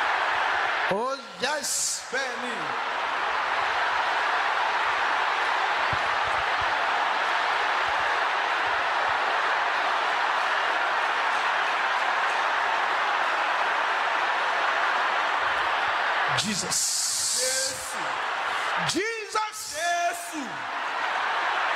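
A man speaks loudly and with passion through a microphone.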